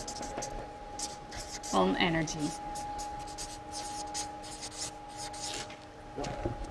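A marker squeaks across paper.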